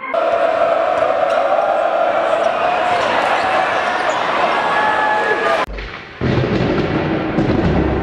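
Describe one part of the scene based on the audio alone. A large crowd cheers in an echoing gym.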